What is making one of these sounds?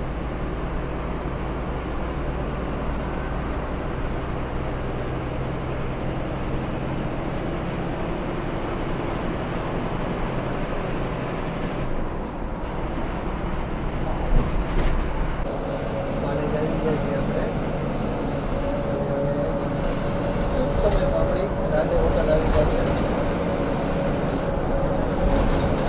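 A vehicle's engine hums steadily from inside while driving.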